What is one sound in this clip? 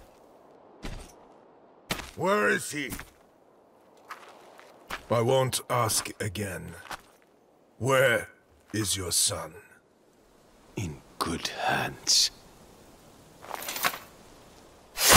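A man speaks in a low, stern voice.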